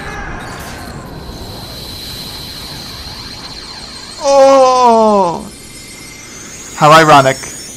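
A magical beam of light hums with a high, shimmering ring.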